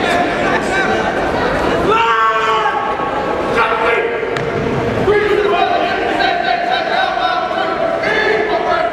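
A group of young men sing together in a large echoing hall.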